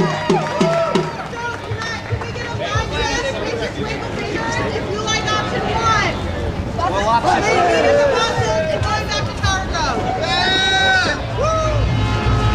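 A crowd of men and women talk and cheer loudly outdoors.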